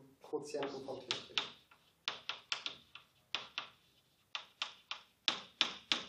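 Chalk taps and scrapes on a board in quick strokes.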